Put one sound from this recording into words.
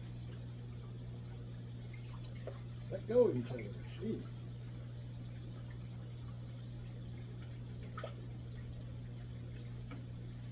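Air bubbles gurgle softly in water.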